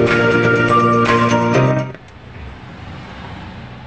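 A button clicks on a loudspeaker.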